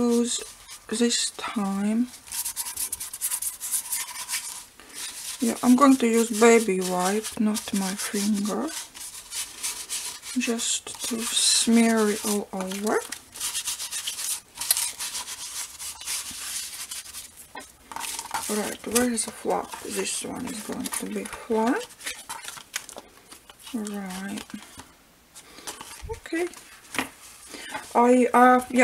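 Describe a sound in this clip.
Paper rustles and crinkles as fingers rub and press it.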